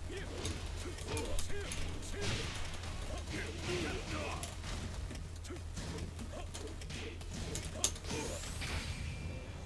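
Punches and kicks thud and smack in a fighting game.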